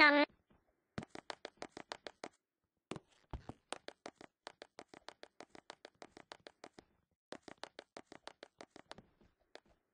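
Quick, light footsteps patter.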